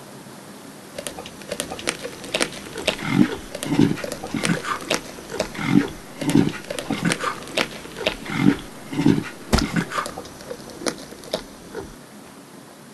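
Lions tear and crunch at a carcass as they feed.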